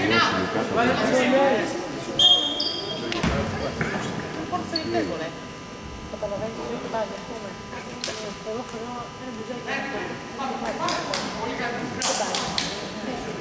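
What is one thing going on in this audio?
Voices of spectators and players chatter throughout a large echoing hall.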